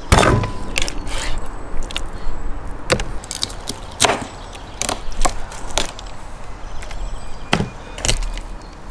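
A knife chops and thuds through fish on a wooden board.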